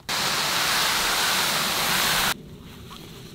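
Heavy canvas rustles and flaps.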